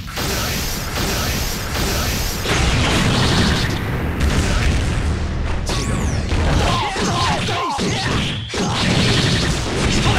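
Electric crackling zaps burst loudly.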